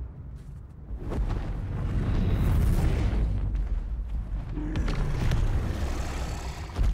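A large beast roars loudly.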